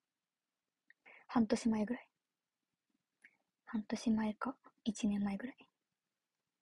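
A young woman speaks softly and casually, close to the microphone.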